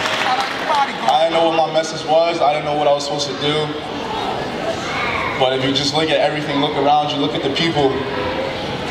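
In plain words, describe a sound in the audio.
A young man speaks into a microphone over loudspeakers in an echoing hall.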